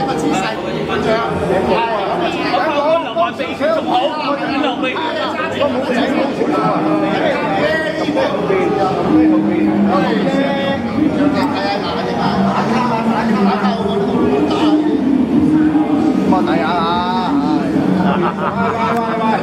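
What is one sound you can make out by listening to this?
A crowd chatters in the background outdoors.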